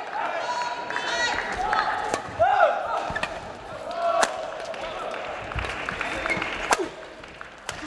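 Shuttlecocks crack off badminton rackets in a quick rally.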